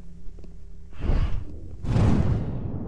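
A soft whooshing rush sweeps past and fades.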